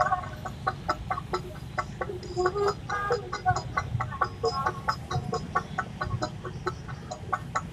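Motorcycle engines idle and rumble nearby in traffic.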